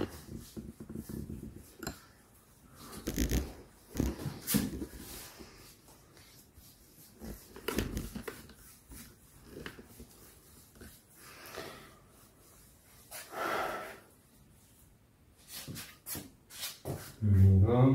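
Tools knock and scrape against a door.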